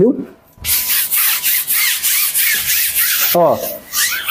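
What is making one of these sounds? A stiff broom scrubs a wet floor with a rough swishing.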